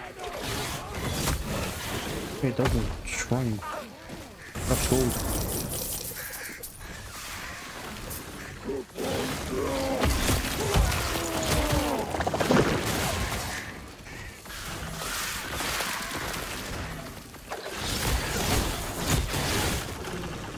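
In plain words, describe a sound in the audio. Electric bolts crackle and zap in bursts.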